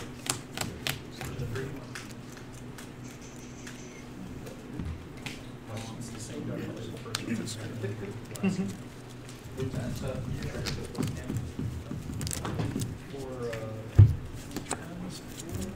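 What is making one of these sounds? Playing cards tap and slide softly on a table mat.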